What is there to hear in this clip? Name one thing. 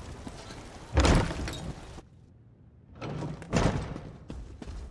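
A heavy door swings open with a loud whoosh.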